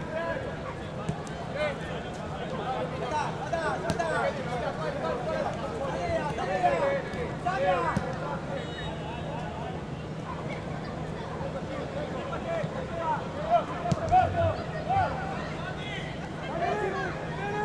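A crowd murmurs in the stands outdoors.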